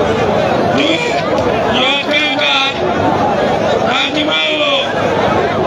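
A man speaks loudly and animatedly through a microphone and loudspeaker.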